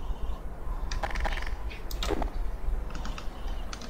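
A submachine gun is drawn with a metallic click.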